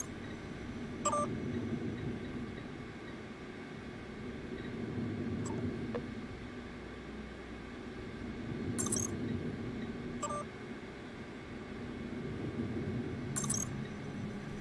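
Short electronic beeps chirp as menu buttons are pressed.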